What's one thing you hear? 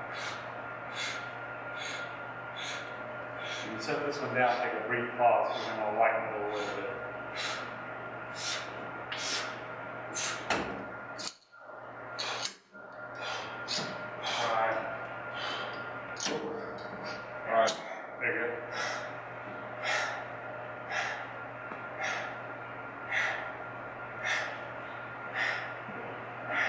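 A gym machine's weights clank and creak with each repetition.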